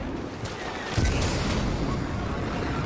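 A jetpack roars as it blasts off.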